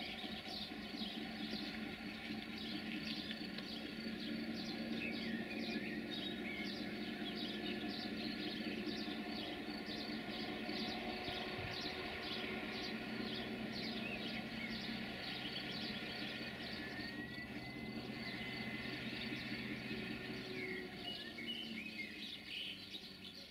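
Train wheels click and clatter over the rail joints.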